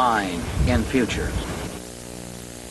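A man speaks emphatically and close up, outdoors.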